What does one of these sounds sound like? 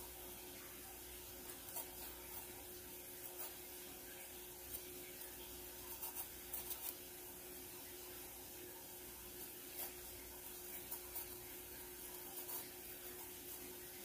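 A knife cuts into a bell pepper with soft crunches and clicks.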